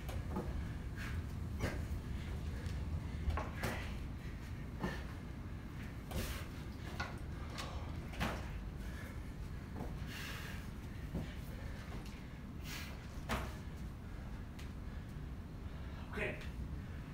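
A man's hands and feet thud on the floor during an exercise.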